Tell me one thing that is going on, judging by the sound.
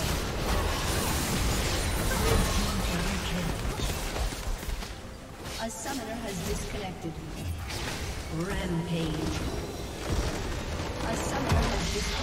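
Video game spell effects crackle and burst in a busy battle.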